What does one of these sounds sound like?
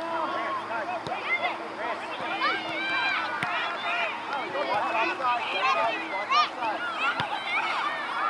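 A soccer ball thuds off a player's foot.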